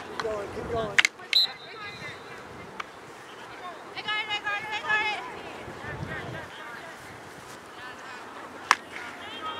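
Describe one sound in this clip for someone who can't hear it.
A hockey stick sharply smacks a ball.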